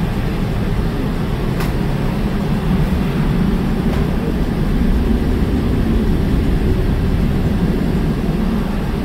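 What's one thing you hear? A semi truck drives past on a road.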